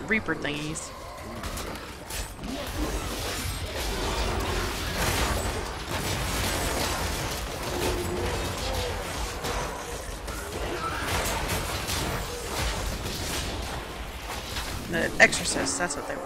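Game spells crackle and blast with electric bursts.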